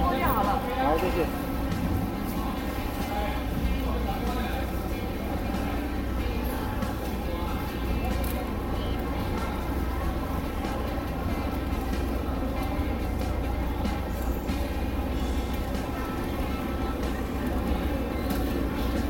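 A crowd of men and women chatter all around in a busy hall.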